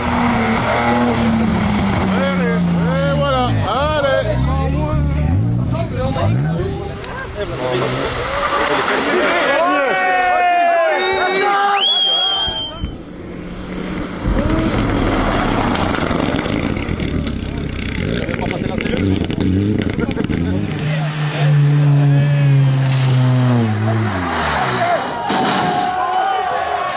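A rally car engine roars and revs hard as it speeds past.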